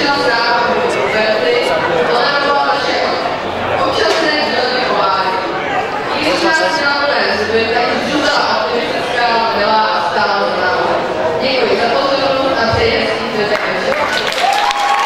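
A young woman reads out through a microphone in a large hall.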